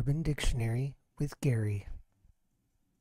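A man talks through a microphone over an online call.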